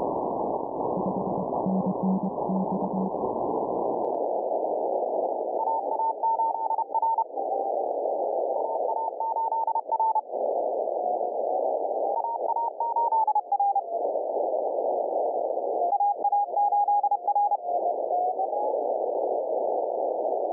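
Radio static hisses steadily, turning thinner and narrower after a few seconds.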